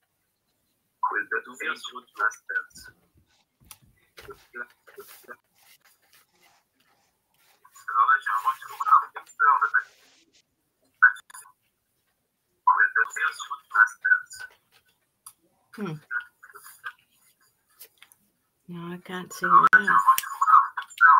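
A middle-aged woman speaks over an online call.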